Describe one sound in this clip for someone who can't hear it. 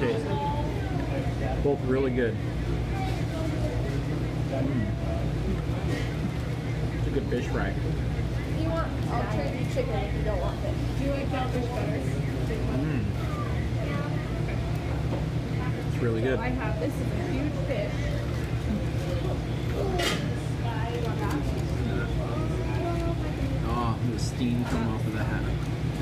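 Paper wrappers crinkle as food is handled.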